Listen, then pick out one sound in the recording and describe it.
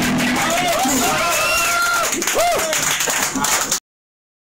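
A crowd cheers and shouts close by.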